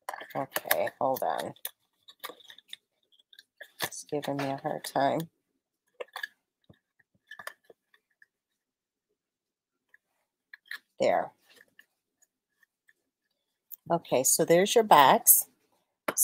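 Paper rustles and creases softly as it is folded.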